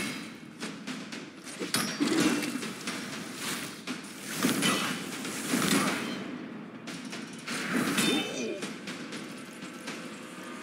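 Magical spell effects whoosh and shimmer.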